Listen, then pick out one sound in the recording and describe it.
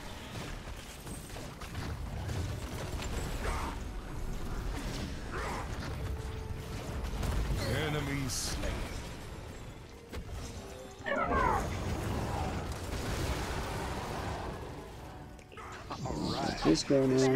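Game battle effects clash and blast steadily.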